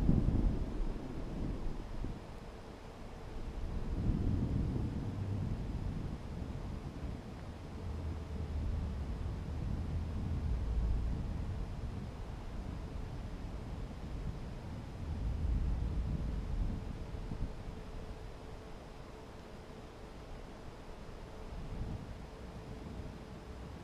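Wind rumbles and buffets in uneven gusts high in the open air.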